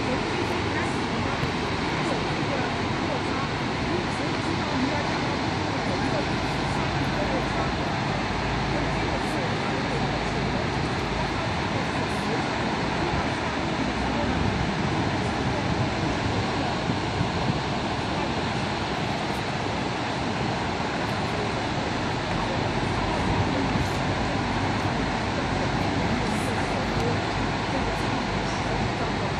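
River rapids rush and roar steadily below.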